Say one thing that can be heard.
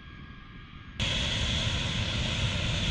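A large jet aircraft roars as it takes off.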